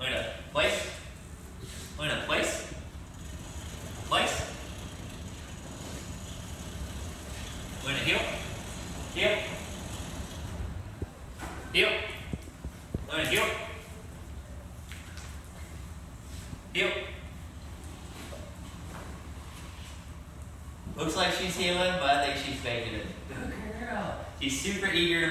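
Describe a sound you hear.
A young man gives short commands and praise to a dog, close by, in a slightly echoing room.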